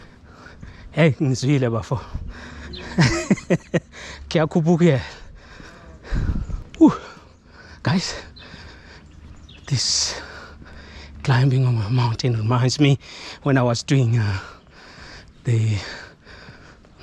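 A man talks casually close to the microphone.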